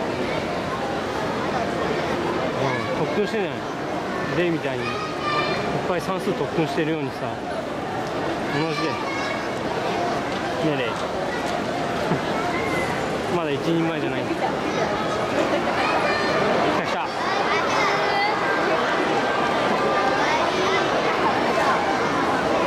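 Children shout and squeal excitedly.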